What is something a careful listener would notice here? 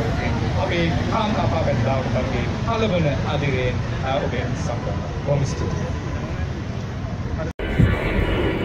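A man speaks through a microphone and loudspeaker outdoors.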